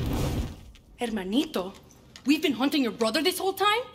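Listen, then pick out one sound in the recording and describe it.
A young woman speaks firmly.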